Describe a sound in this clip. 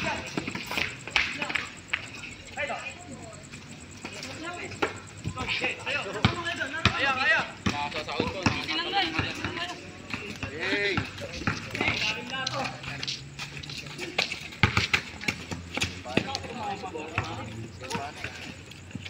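A basketball bounces on hard concrete.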